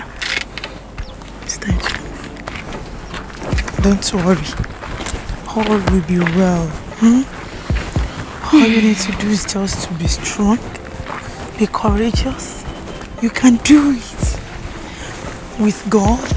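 A middle-aged woman speaks gently and reassuringly up close.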